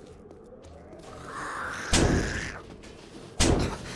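A zombie snarls close by.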